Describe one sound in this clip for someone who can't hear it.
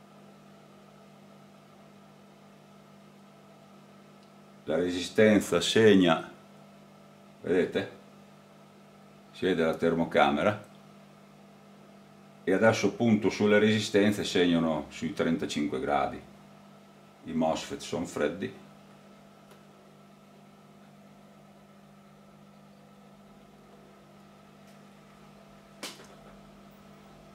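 A transformer hums steadily and low.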